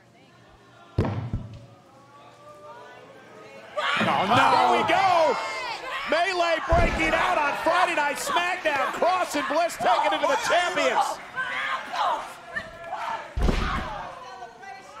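Heavy thuds of bodies slam onto a wrestling mat.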